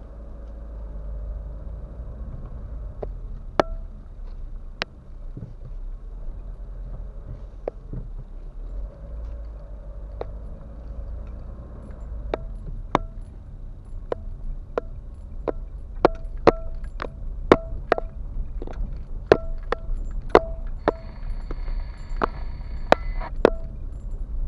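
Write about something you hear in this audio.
A car engine hums low and steady inside a car.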